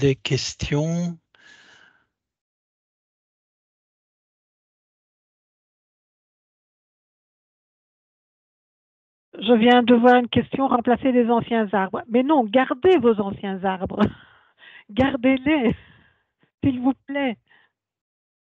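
A woman speaks calmly over an online call, pausing now and then.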